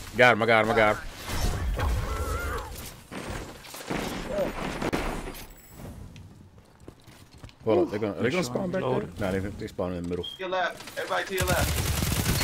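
A gun fires several shots in quick bursts.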